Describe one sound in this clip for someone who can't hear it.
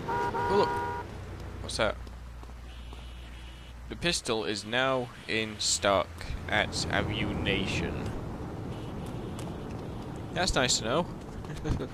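Footsteps slap on pavement at a run.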